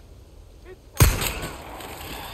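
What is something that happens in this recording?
A pistol fires a single loud shot that echoes away.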